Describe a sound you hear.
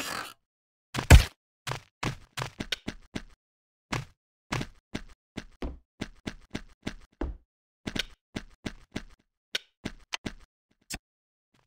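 Game footsteps tap quickly on a hard floor.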